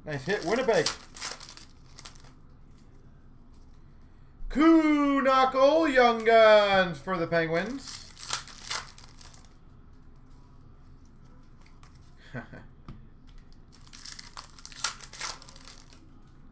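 Card packs tear open and cards rustle in hands.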